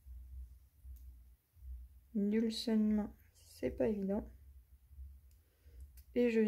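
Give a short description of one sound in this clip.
Small pliers click faintly.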